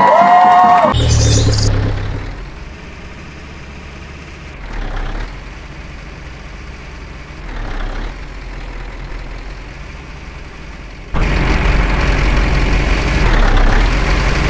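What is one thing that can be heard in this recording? A truck engine hums low and steadily, rising as the truck speeds up.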